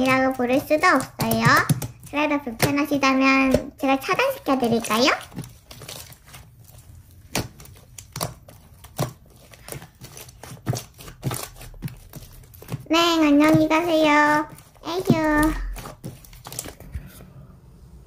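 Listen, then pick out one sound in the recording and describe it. Wet slime squishes and crackles between fingers.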